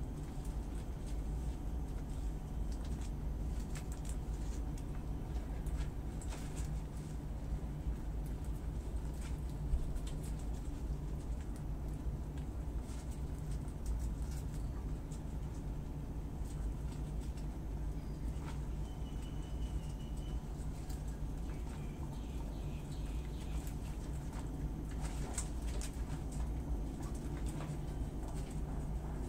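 Guinea pigs and a rabbit chew crunchy leafy greens up close.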